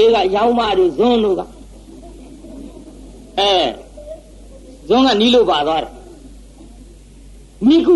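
An elderly man speaks in a slow, sing-song voice, with pauses between phrases.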